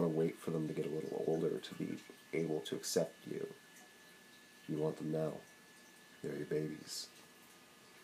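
A young man talks calmly and close up, in short bursts.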